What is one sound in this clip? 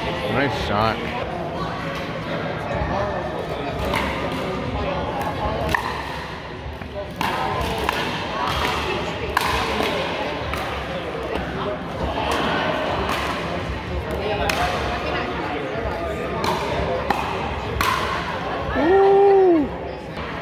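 Voices and paddle hits echo around a large indoor hall.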